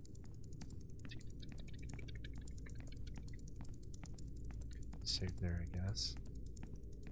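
A man speaks briefly and quietly into a microphone.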